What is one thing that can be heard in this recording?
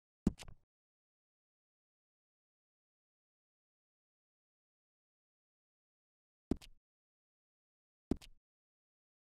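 Soft interface clicks sound a few times.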